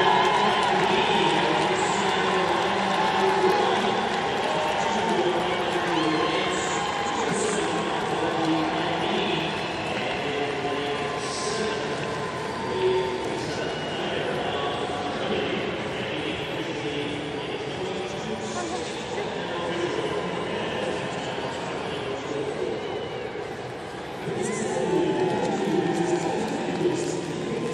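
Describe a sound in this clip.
A large stadium crowd cheers and murmurs in a wide open arena.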